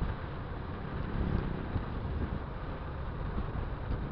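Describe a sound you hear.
Another motorcycle passes by in the opposite direction.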